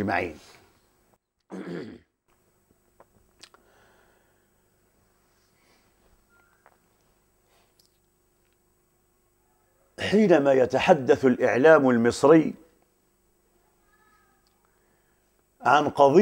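A middle-aged man speaks calmly into a close microphone, with pauses.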